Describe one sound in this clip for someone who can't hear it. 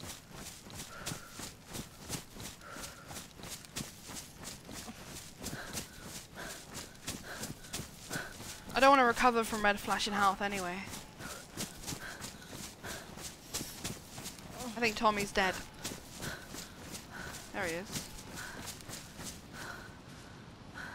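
Footsteps run quickly over dry leaves and forest ground.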